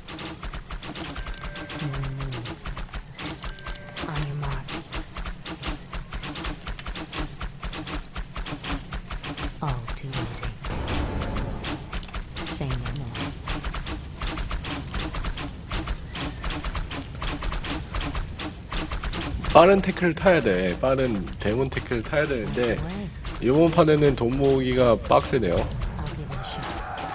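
Rapid clicks and blows of a game battle sound steadily.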